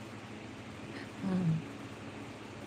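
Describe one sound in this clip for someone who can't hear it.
A woman laughs briefly, close by.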